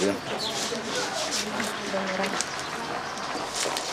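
An elderly man talks nearby.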